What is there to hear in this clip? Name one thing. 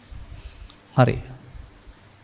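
An elderly man speaks a short word softly into a microphone.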